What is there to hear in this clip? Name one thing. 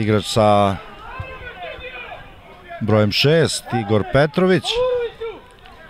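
Players argue with a referee, their voices distant.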